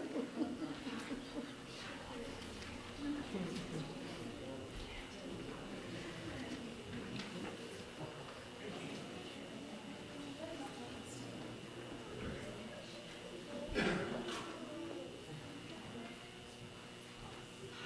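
A woman speaks calmly through a loudspeaker in a large echoing hall.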